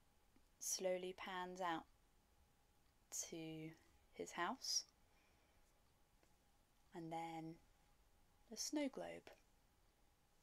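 A young woman talks calmly and close to a microphone, in short bursts with pauses.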